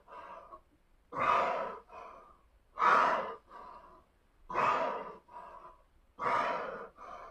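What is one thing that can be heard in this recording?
A man breathes heavily in a steady rhythm, with forceful exhales.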